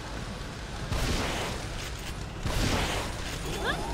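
A shotgun fires with a loud boom.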